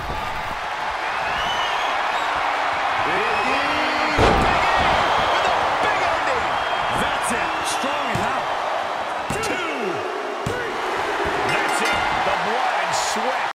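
A crowd cheers and roars loudly throughout.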